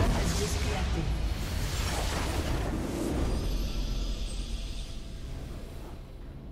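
Game battle effects crash and explode loudly.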